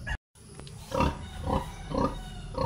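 A pig grunts close by.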